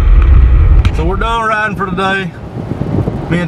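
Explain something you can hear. A young man talks nearby in a car.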